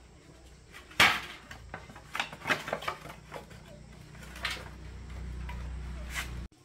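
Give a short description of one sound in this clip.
Metal tools clank and scrape against motorcycle parts.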